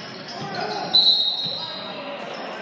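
A referee's whistle blows shrilly.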